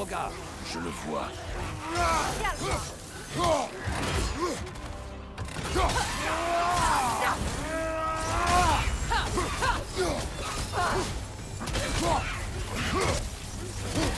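Weapons clash and strike hard in a fierce fight.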